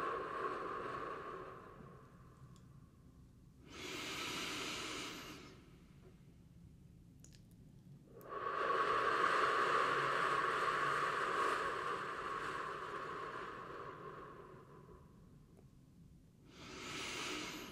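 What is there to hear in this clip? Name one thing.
A young man whispers softly close to a microphone.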